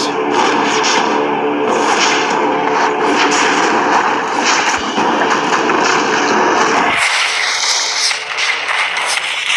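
Video game battle sounds clash and crackle with a dense, busy noise.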